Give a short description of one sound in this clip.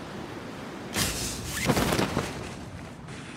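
A parachute snaps open with a loud flapping rush.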